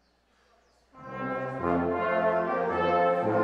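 A brass band begins playing loudly together in a large room.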